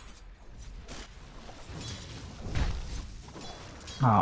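Magic spells whoosh and blows strike in a fight.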